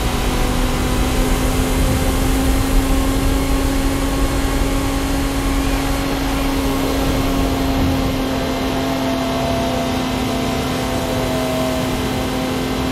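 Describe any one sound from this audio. Tyres hum and rumble on a smooth track.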